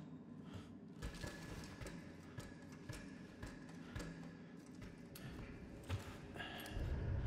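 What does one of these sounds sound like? Hands and feet clank on a metal ladder.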